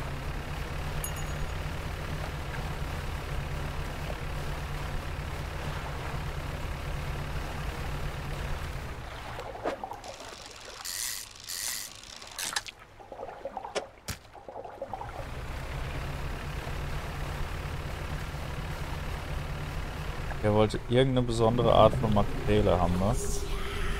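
Water splashes around a moving boat's hull.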